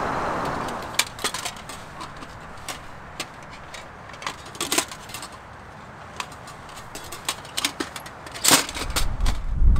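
Small metal parts clink and clack close by.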